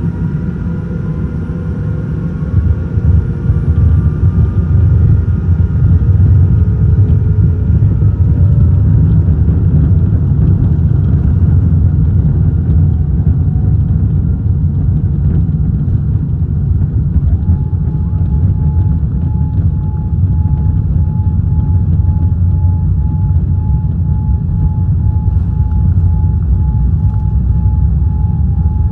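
Wheels rumble and thud over the runway.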